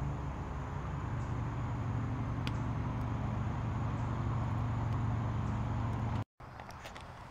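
A campfire crackles and hisses outdoors.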